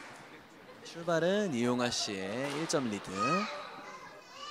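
Sneakers squeak sharply on a court floor.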